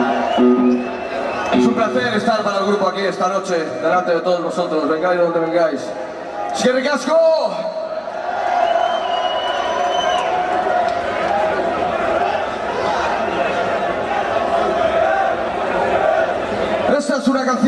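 Loud live music plays with an echo.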